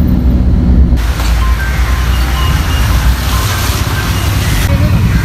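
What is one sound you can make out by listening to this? Traffic rolls by on a wet road.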